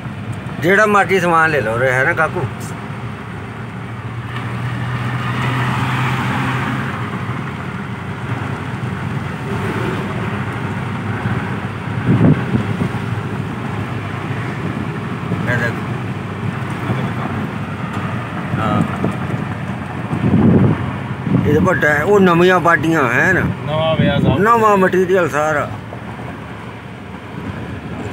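Tyres rumble steadily on a paved road.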